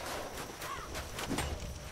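A creature's flaming attack whooshes and roars.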